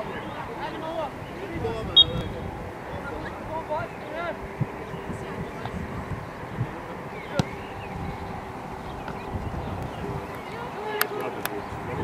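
Teenage boys shout to each other across an open field.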